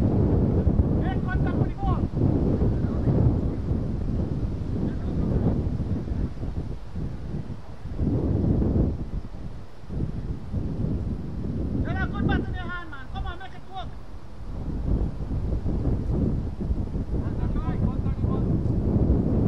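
Men call out across an open field in the distance.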